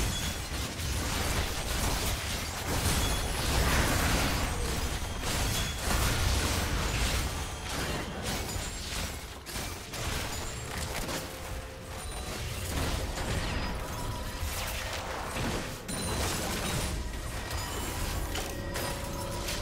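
Video game spell effects crackle, whoosh and blast during a fight.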